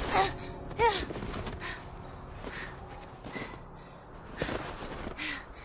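A young girl groans and gasps in pain.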